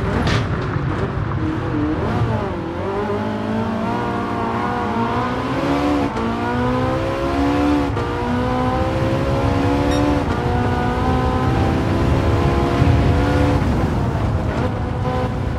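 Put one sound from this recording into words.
A racing car engine roars and climbs in pitch, dropping briefly at each gear change.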